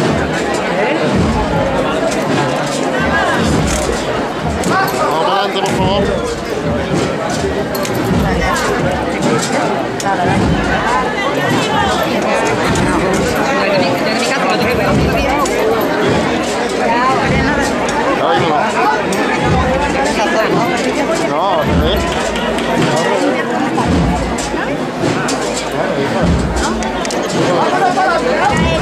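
A crowd of people murmurs and chatters close by.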